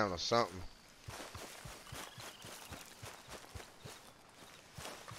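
Footsteps rustle through tall grass at a steady pace.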